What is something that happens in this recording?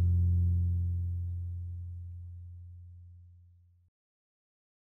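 A band's last chord rings out and slowly fades away.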